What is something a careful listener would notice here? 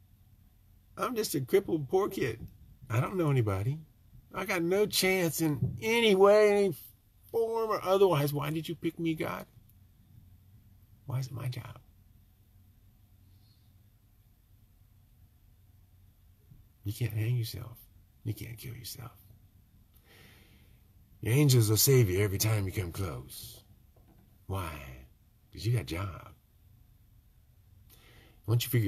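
A middle-aged man speaks close to a microphone, with animation and long pauses.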